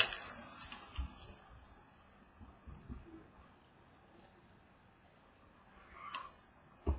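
Trading cards rustle and click as hands shuffle them.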